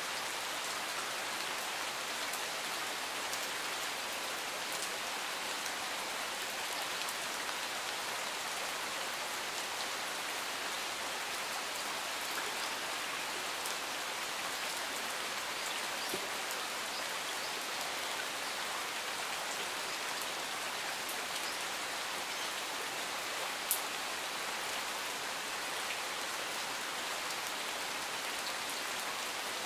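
Steady rain falls outdoors, pattering on leaves and gravel.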